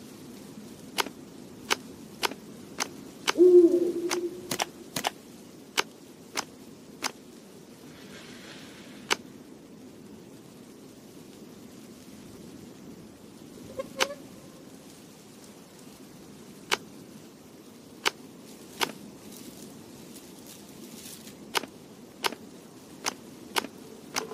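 Puzzle pieces click sharply as they are moved and turned.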